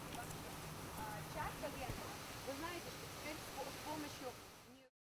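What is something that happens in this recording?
A young woman reads aloud at a distance outdoors.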